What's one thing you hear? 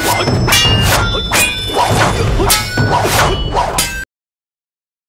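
Punches whoosh and thud in a fast fight.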